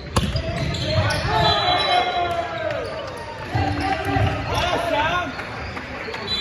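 Young players shout and call out to each other in a large echoing hall.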